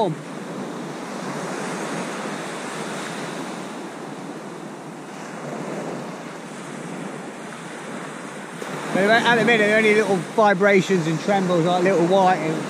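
Small waves break gently on a beach, outdoors in wind.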